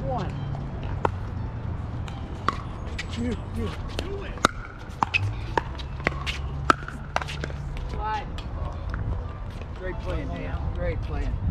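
Pickleball paddles strike a plastic ball with sharp pops.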